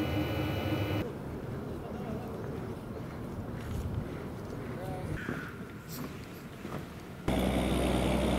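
Soldiers' boots tramp on snow as they march.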